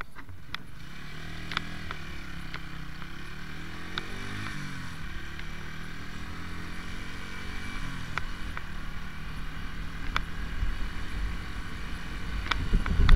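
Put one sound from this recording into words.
Wind rumbles against the rider's microphone.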